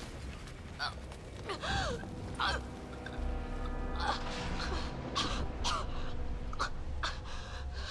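A man gasps for air inside a helmet.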